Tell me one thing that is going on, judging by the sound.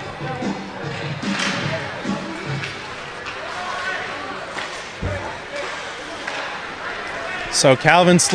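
Skates scrape and swish across the ice in a large echoing rink.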